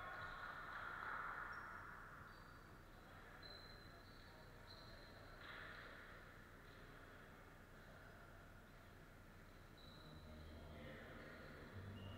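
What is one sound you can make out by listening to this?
Young men's voices chatter at a distance in a large echoing hall.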